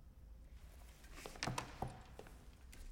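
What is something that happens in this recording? Fingers tap on a wooden table.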